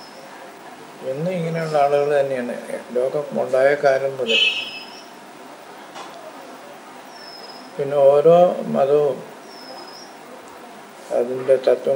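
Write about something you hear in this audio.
An elderly man speaks calmly and slowly, close by, in short phrases with pauses.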